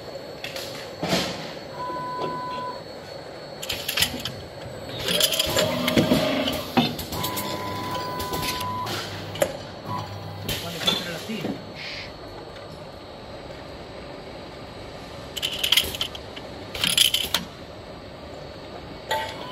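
Metal parts clatter and clank as the machine moves.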